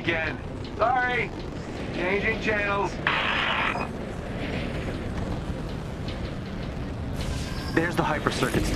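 Jet thrusters roar steadily in flight.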